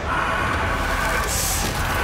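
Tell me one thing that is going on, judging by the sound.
A creature growls quietly.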